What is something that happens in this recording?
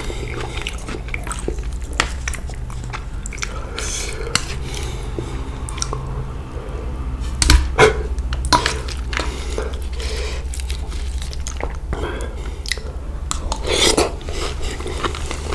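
Metal utensils clink and scrape against a metal plate.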